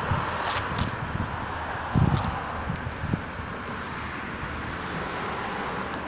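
Footsteps tap on a hard pavement.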